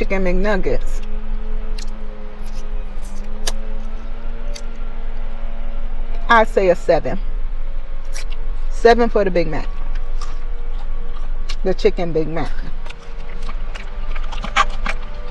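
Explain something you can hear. A woman crunches and chews food close by.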